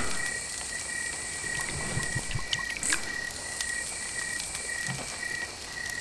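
A campfire crackles and pops softly.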